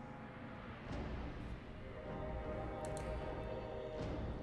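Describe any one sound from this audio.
A magical shimmer hums and swells.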